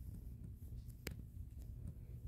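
A short click sounds as a card is placed.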